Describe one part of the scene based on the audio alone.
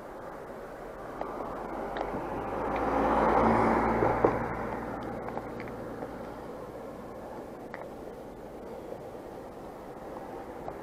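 Road noise hums steadily from inside a moving car.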